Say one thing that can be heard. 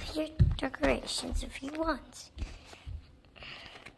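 Bare feet pad softly across a wooden floor.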